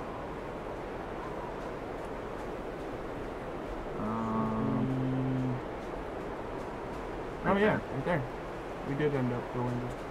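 Wind blows steadily through trees outdoors.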